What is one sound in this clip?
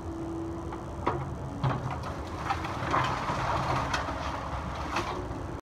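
Wood and debris crack, crunch and clatter as an excavator claw tears into a pile of wreckage.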